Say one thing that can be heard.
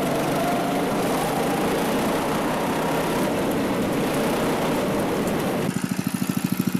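A kart engine roars loudly while driving.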